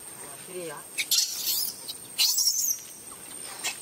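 Dry leaves rustle and crackle as a monkey moves through plants.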